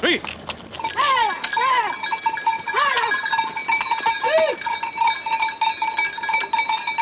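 A goat's bell clanks and rings.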